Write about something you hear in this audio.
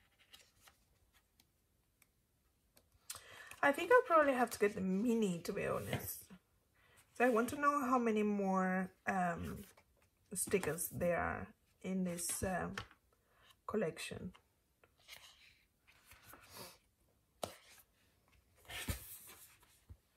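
Paper sticker book pages rustle as they are turned.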